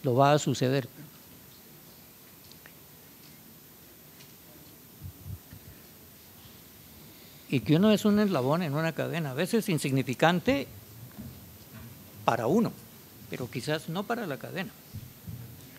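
An elderly man speaks with animation through a microphone in an echoing hall.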